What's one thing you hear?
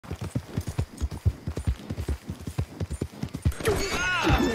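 Horse hooves thud quickly on soft ground.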